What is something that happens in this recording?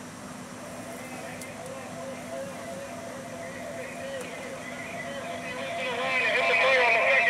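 A siren wails and grows louder.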